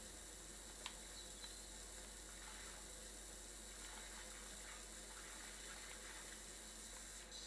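A pressure washer sprays water with a steady hiss.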